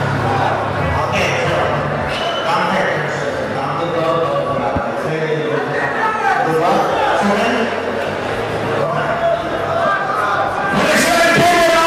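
A middle-aged man announces through a microphone and loudspeakers, echoing in the hall.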